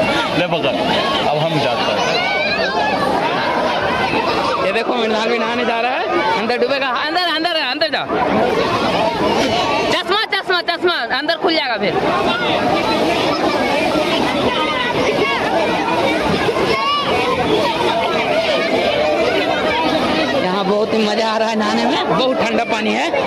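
Children laugh and shriek in the water.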